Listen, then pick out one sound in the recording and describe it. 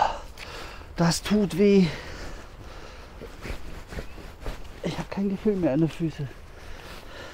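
A man talks in short bursts close by.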